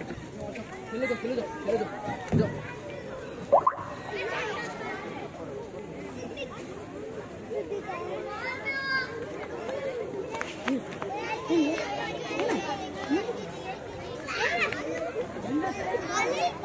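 Men cheer and shout loudly together.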